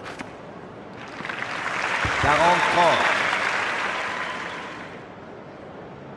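A crowd cheers and applauds loudly, then fades.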